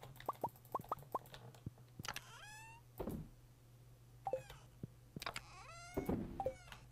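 Short game sound effects blip and chime as items move in a menu.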